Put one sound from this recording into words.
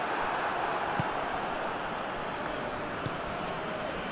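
A football is kicked.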